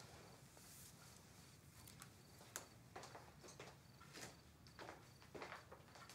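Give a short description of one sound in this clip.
Footsteps walk away across a floor.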